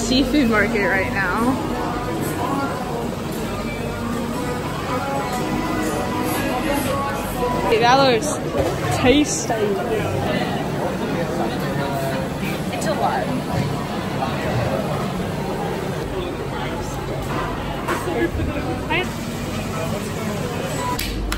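Many people chatter and murmur in a busy, echoing hall.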